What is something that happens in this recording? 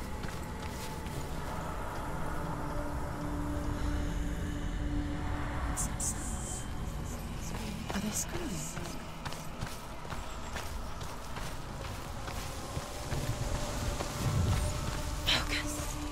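Footsteps crunch on rough ground and gravel.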